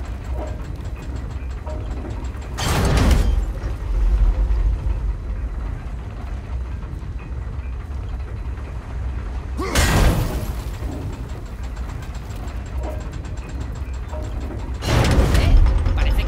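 An axe whooshes back through the air into a hand.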